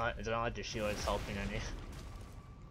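Wooden crates smash apart with loud crashes.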